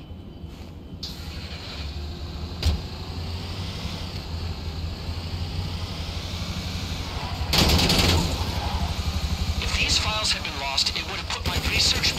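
A heavy truck engine rumbles as it drives.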